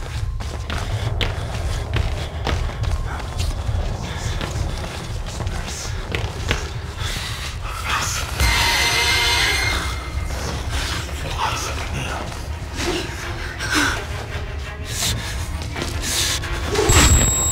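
Footsteps crunch slowly over debris.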